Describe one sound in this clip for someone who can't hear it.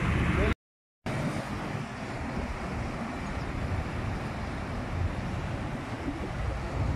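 Traffic passes on a road.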